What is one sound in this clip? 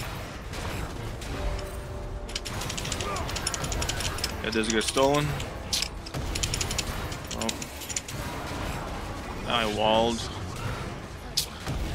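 Fantasy battle effects crackle and whoosh in quick bursts.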